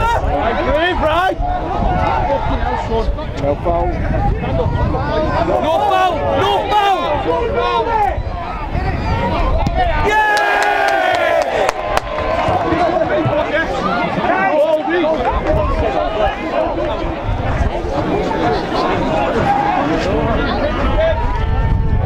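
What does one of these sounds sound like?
A crowd of spectators talks and shouts outdoors.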